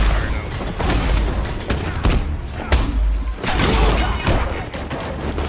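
Men grunt and groan as they are struck.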